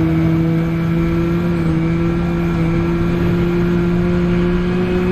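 A racing car engine drones steadily at high revs, its pitch creeping slowly upward.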